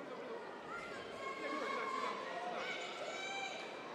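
A man referee calls out loudly.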